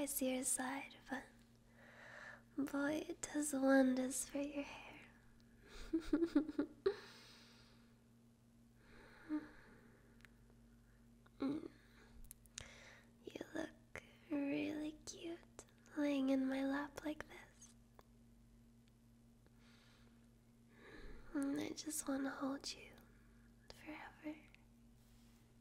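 A young woman speaks softly and intimately, close to a microphone.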